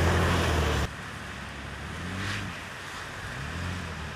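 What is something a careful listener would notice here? A second vehicle's engine hums faintly in the distance.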